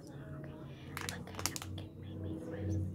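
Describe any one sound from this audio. A plastic packet crinkles.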